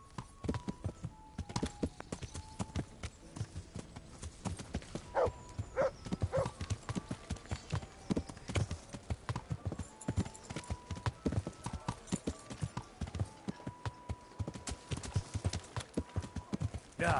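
Horse hooves clop steadily on a dirt road.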